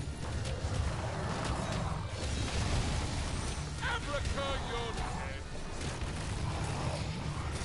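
Video game combat effects clash and whoosh.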